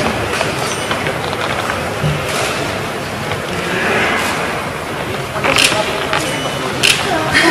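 Several adults chat in low voices in an echoing hall.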